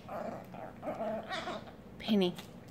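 Small dogs growl playfully while wrestling.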